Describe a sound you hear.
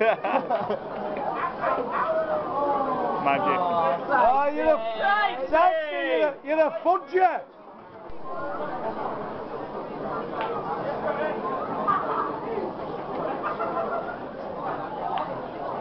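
Many people chatter in a large, echoing hall.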